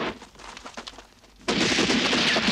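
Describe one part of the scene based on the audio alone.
Rifles fire in a rapid volley.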